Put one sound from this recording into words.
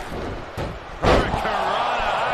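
A heavy body slams onto a wrestling mat with a thud.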